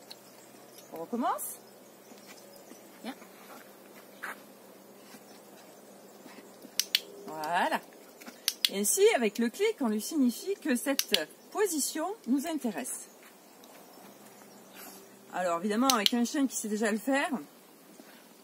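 A woman speaks calmly and encouragingly, close by, outdoors.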